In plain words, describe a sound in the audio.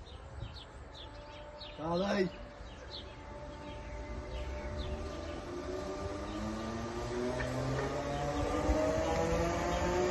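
Train wheels rumble and clack on the rails.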